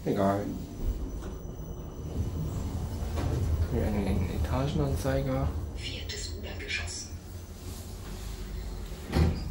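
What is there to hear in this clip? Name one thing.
An elevator hums steadily as it moves.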